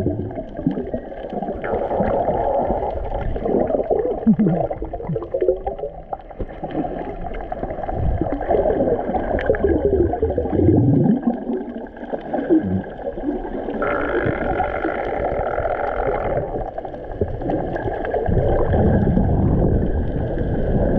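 Water rushes and gurgles in a muffled underwater roar.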